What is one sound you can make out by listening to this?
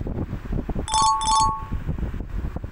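A short bright chime rings twice.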